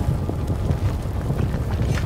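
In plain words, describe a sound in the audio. Footsteps run across wooden planks.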